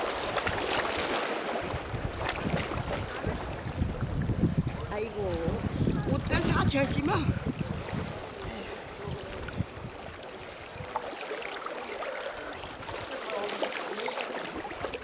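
Water splashes and sloshes as a person wades through the sea.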